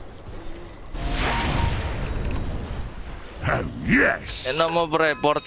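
Fantasy battle effects clash and whoosh in a video game.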